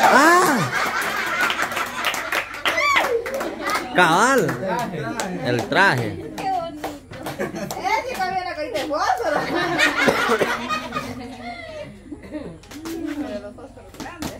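Several children and women chatter excitedly close by.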